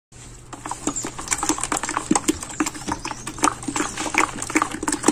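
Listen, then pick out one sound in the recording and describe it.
A plastic spatula scrapes and taps against the side of a plastic bucket.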